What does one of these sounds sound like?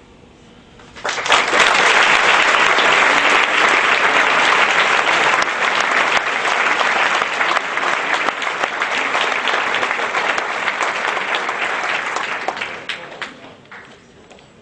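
An audience claps and applauds loudly in a large room.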